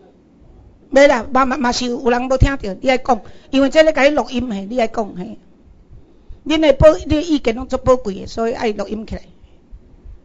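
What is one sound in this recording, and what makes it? A woman speaks with animation into a microphone, heard through loudspeakers in a hall.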